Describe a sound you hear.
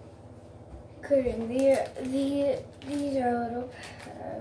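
A young girl speaks close by in a pinched, nasal voice.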